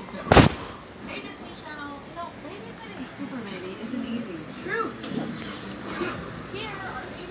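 A young woman speaks with animation through a television's speaker, heard across a room.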